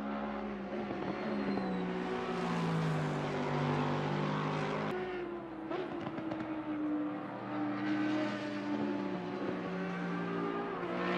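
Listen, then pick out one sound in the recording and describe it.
A racing car engine roars loudly, its pitch rising and falling as it shifts gears.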